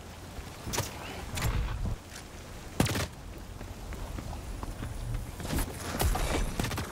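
A gun fires in sharp, separate shots.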